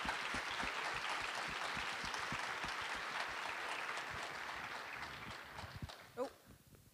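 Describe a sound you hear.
An audience applauds in a large hall and the applause fades.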